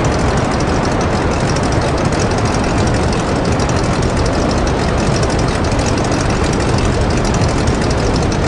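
A propeller engine drones loudly and steadily.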